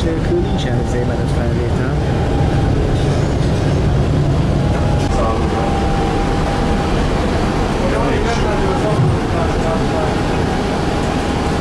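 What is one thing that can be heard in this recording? A tram's motor whines steadily.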